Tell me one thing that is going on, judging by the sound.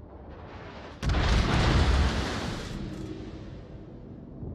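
Shells splash heavily into the sea with a loud roar of water.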